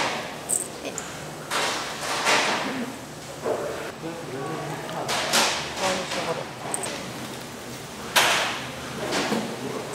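Sugar crystals rustle and patter into a metal bowl.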